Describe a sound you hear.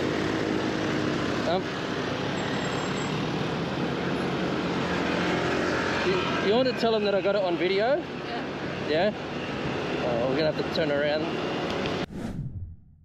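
A motorbike engine runs steadily close by.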